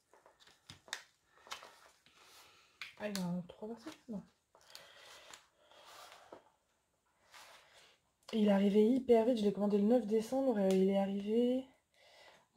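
An arm brushes softly across a sheet of paper.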